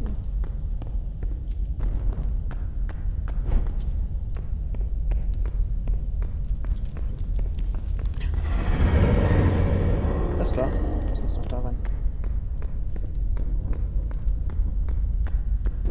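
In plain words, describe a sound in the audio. A torch flame crackles and roars steadily.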